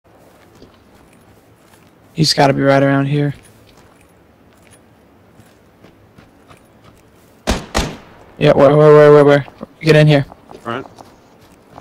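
Footsteps rustle through grass.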